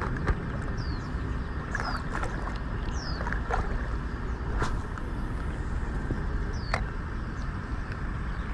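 A man wades through shallow water, splashing softly.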